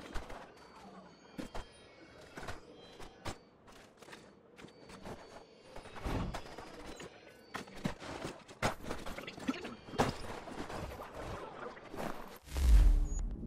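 Footsteps thud and scrape on rooftops.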